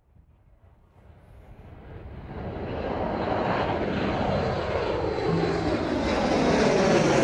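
A jet airliner roars loudly as it climbs past.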